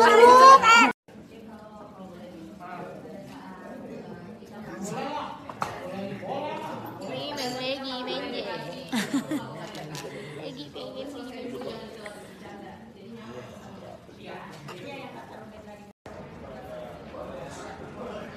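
A young woman talks close by, casually.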